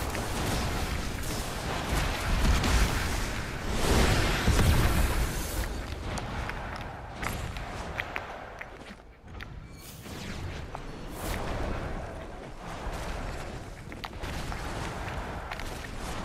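A magical whoosh swells and crackles.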